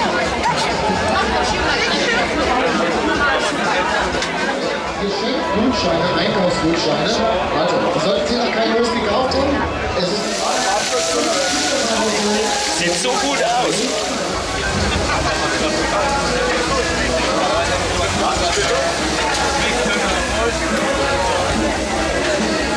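A crowd chatters all around, outdoors.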